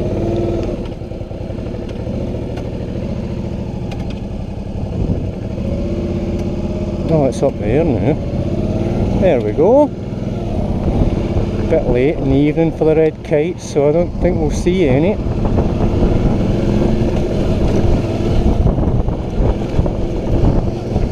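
A motorcycle engine hums steadily and revs up and down while riding.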